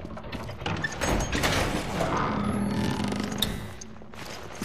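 Heavy vault doors rumble and grind open.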